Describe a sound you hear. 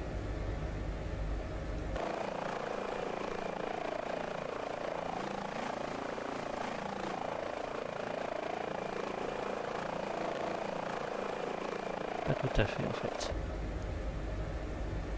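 A helicopter's engine drones steadily.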